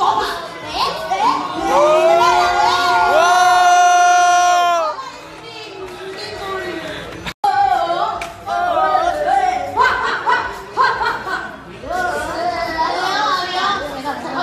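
A crowd of young adults cheers and whoops loudly nearby.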